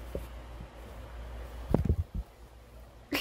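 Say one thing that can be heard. A soft fabric toy rustles as it is handled close by.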